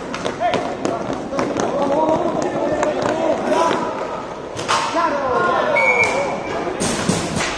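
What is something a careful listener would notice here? Young men shout and call out to each other in an open outdoor space.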